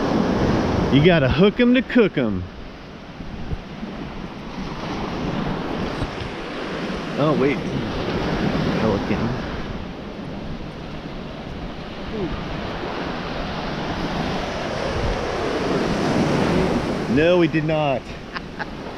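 A middle-aged man speaks casually, close to the microphone.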